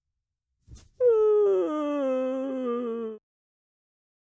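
A young man sings a long, falling note close to a microphone.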